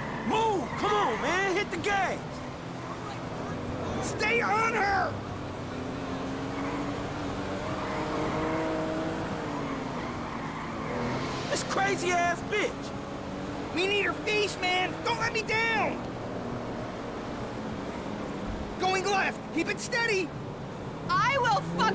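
A car engine hums and revs as the car drives along a road.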